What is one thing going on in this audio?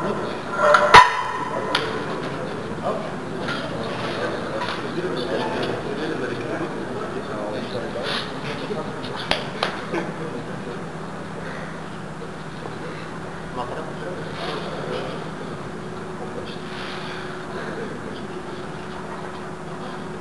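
Several men talk casually nearby.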